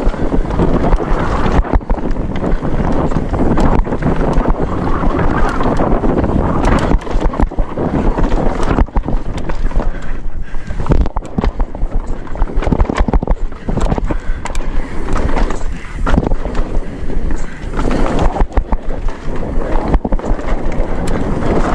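Bike tyres crunch and roll over a dirt trail.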